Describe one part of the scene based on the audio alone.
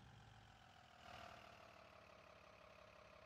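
A bus engine revs briefly, then settles.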